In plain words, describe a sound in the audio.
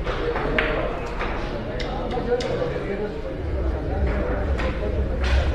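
Billiard balls click against each other now and then.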